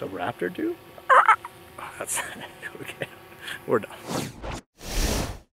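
A young man talks with animation outdoors, close to a microphone.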